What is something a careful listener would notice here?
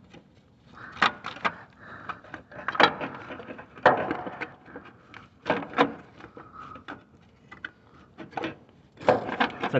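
A thin metal cover rattles and clanks as it is handled.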